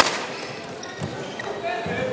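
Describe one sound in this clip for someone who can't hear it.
A racket strikes a shuttlecock with a sharp pop.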